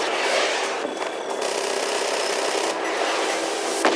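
Engines roar as a vehicle speeds along.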